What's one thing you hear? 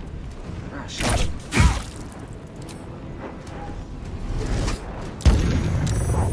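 A magic spell bursts with a loud whoosh.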